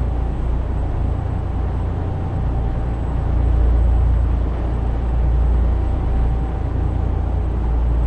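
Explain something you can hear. A truck engine drones steadily with a deep rumble.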